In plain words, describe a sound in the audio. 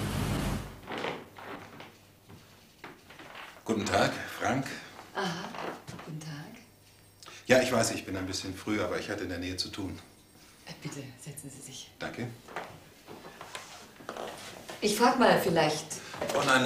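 A middle-aged man talks calmly.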